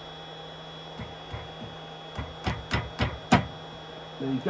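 A mallet taps sharply on a chisel several times.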